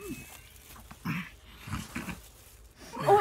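A young man gags.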